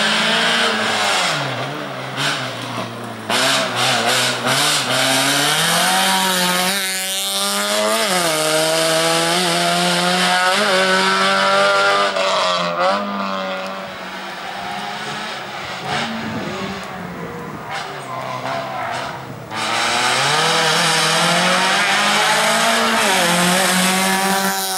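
A car engine revs hard and shifts gears as the car races past.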